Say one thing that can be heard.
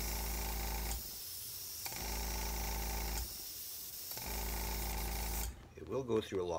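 An airbrush hisses in short bursts with a steady hum.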